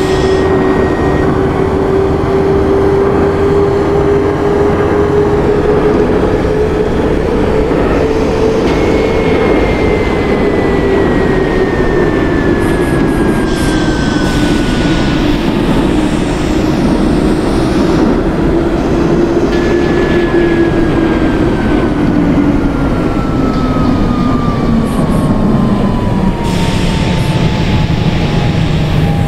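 An electric train motor whines steadily, then drops in pitch as the train slows.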